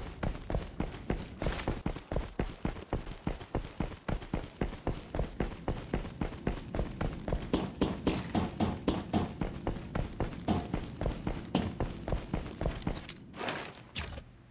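Quick footsteps thud steadily on a hard floor.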